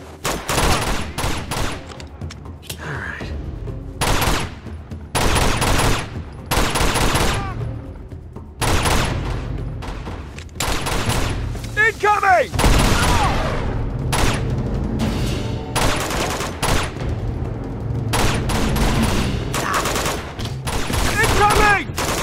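Pistol shots crack repeatedly with echoes.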